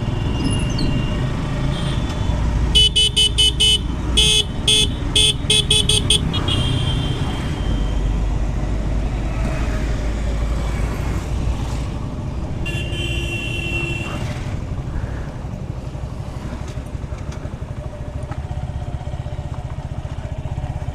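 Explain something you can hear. A motorcycle engine hums steadily while riding, then idles.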